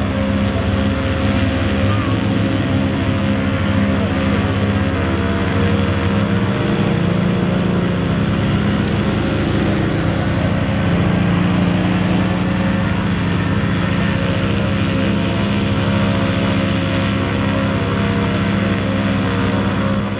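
A small aircraft engine drones steadily overhead, its pitch shifting slightly as it circles.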